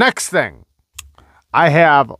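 A folding knife blade snaps open with a click.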